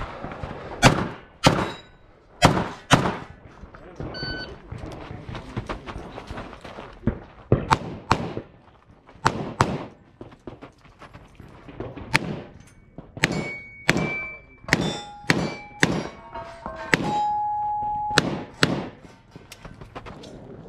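Pistol shots ring out sharply outdoors, in quick pairs and bursts.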